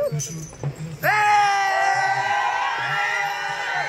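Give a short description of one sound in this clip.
A crowd of young men cheers and shouts loudly close by.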